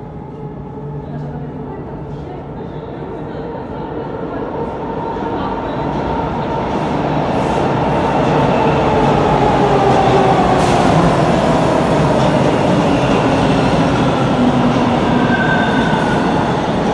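A subway train rumbles into an echoing underground station, growing louder.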